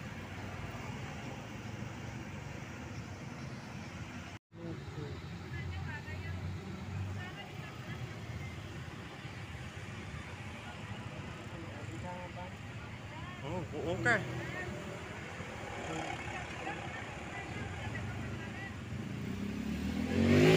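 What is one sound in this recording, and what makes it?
Motor scooters ride by.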